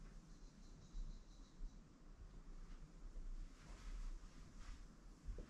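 A pen scratches short strokes on a hard surface.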